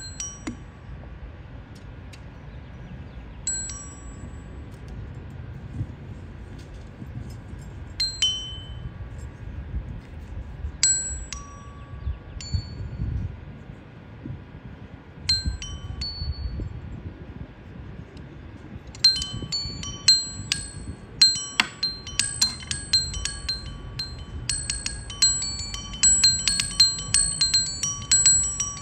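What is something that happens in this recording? Metal bars ring with bright bell-like tones as they are struck, first now and then, then in quick runs.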